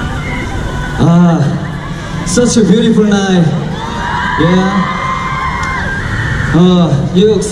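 A man sings through loudspeakers.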